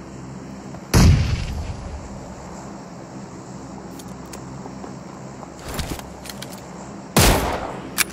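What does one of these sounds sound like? Loud gunshots bang with a short echo.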